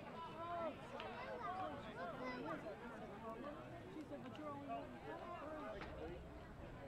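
Young players shout and talk together in a group outdoors.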